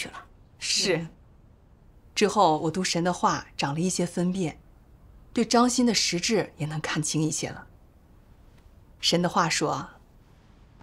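A middle-aged woman speaks calmly and warmly, close by.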